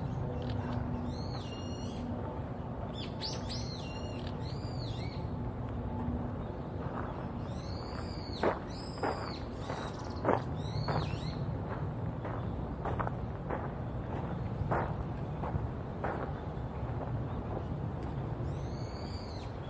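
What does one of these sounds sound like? Footsteps crunch softly on a path outdoors.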